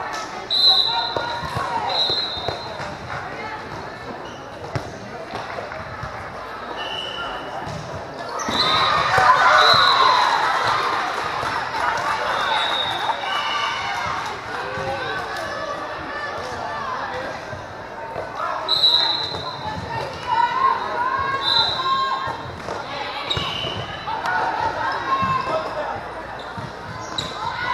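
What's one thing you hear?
A crowd of spectators cheers and chatters in a large echoing hall.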